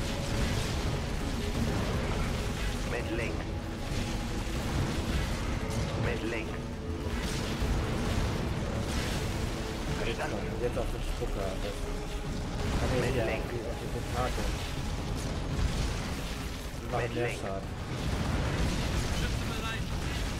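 Tank cannons fire heavy shots.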